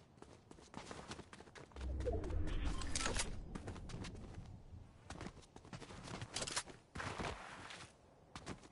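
Quick footsteps tap along a hard path as a game character runs.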